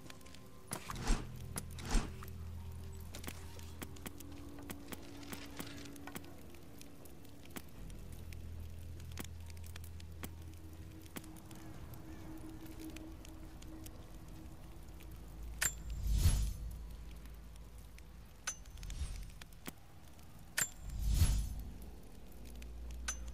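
Soft clicks tick as menu selections change.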